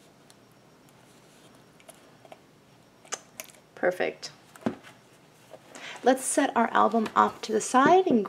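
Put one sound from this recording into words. Stiff card rustles and taps softly as hands handle it, close by.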